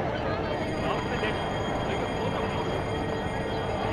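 A crowd murmurs and shouts in the background.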